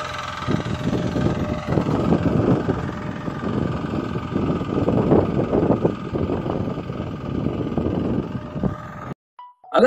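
Tiller blades churn through soil.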